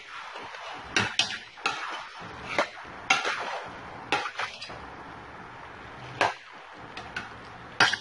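A metal spoon scrapes and clanks against a pot.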